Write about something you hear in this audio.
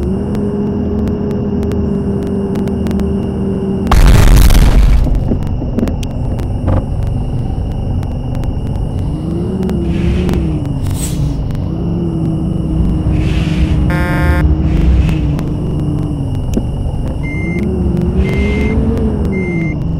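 A bus engine hums steadily, rising and falling in pitch.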